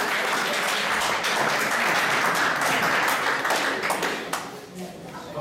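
People clap their hands in a room.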